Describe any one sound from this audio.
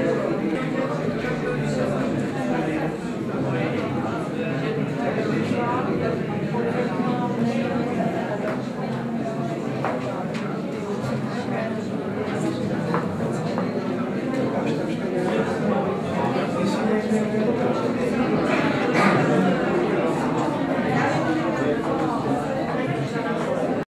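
A crowd of men and women chatter all around in an echoing room.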